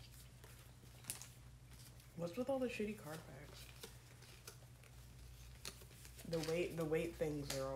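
Trading cards slap softly onto a table.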